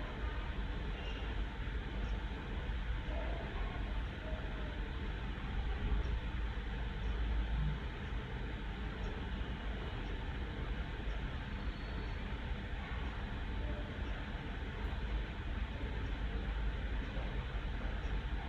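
A woman speaks over an online call.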